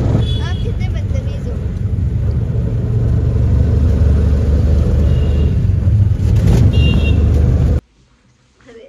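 A young woman talks close by with animation over the road noise.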